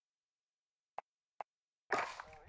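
Short menu clicks sound twice.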